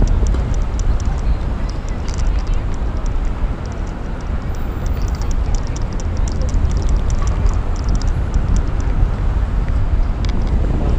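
City traffic hums in the distance.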